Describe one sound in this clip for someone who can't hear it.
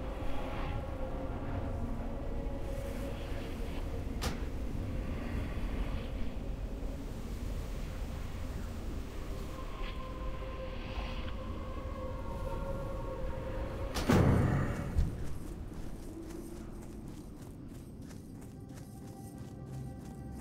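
Footsteps patter quickly as a character runs over the ground.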